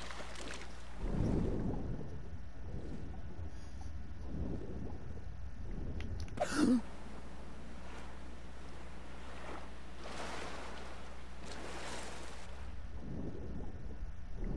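Muffled bubbling and rushing water sound underwater.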